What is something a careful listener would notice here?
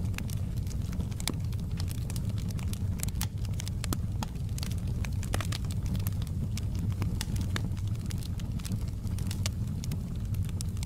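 Flames roar with a low, soft rumble.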